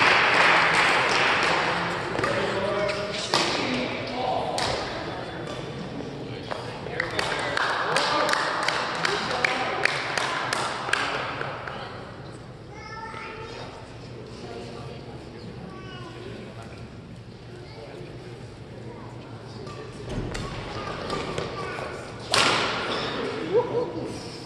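Sneakers squeak on a court floor.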